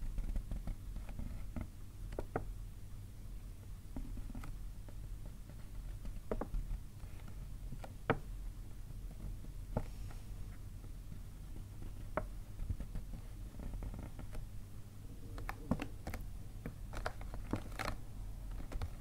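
Paper rustles and crinkles as fingers handle a paper bag.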